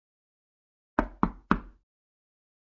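Someone knocks sharply on a wooden door.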